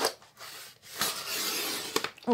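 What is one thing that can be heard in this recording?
A blade scores along paper with a scraping hiss.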